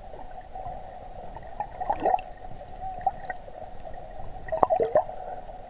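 Water sloshes and bubbles, heard muffled from underwater.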